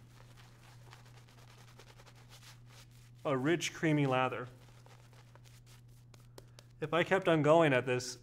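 A shaving brush swishes lather on a man's face.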